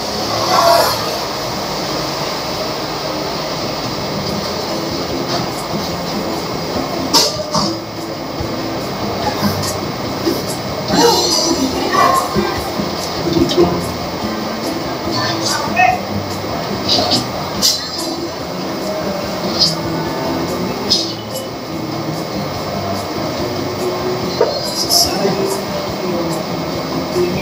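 A towel rubs against a dog's fur.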